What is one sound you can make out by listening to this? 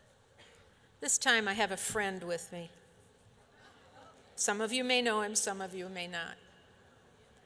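An elderly woman speaks calmly into a microphone over loudspeakers.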